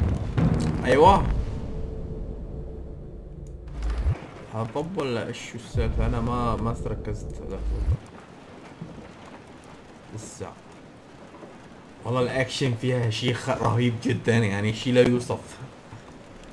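A young man talks with animation, close to a headset microphone.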